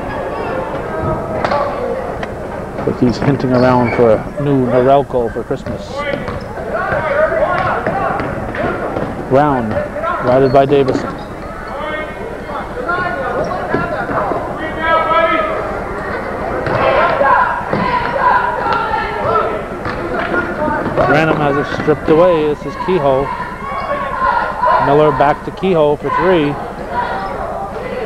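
Men nearby shout and call out loudly in an echoing gym.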